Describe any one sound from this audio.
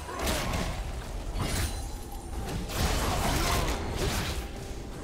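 Magical blasts and clashing effects burst in a rapid, busy battle.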